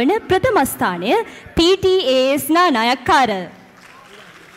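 A woman speaks loudly and with animation through a microphone in a large hall.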